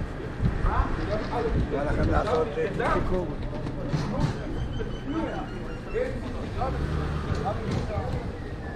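Footsteps scuff on paving stones.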